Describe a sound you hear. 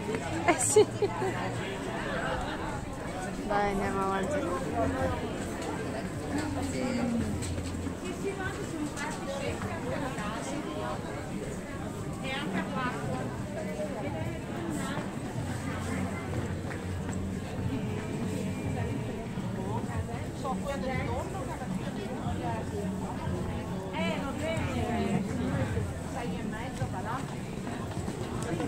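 Footsteps shuffle on a stone pavement.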